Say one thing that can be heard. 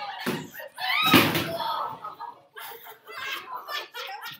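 A young boy shouts with excitement.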